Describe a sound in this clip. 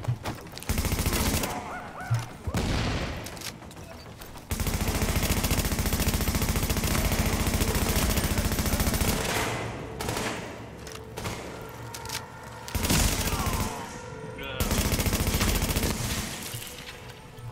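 Rapid gunfire bursts loudly and repeatedly.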